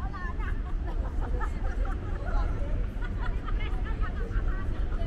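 Men and women talk nearby in the open air.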